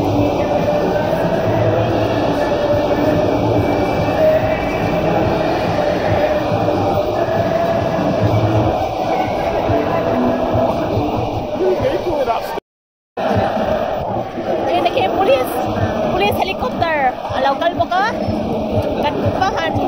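A large stadium crowd sings and chants outdoors.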